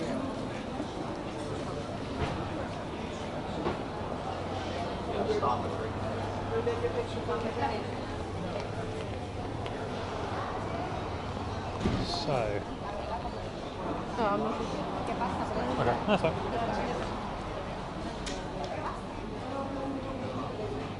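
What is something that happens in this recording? People chatter nearby in a busy street, outdoors.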